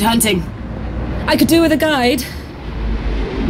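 A young woman speaks a short line, close by.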